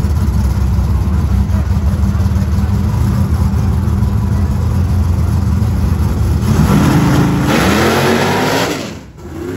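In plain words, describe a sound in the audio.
Race car engines rumble and roar loudly at the start line.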